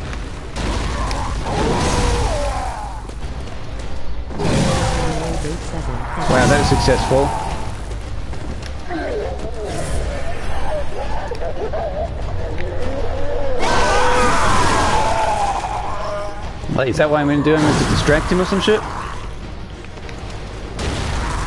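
Metal weapons swing and clash in a fight.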